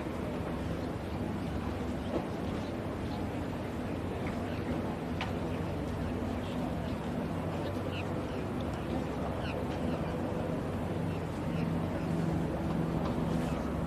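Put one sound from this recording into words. A large outdoor crowd murmurs steadily.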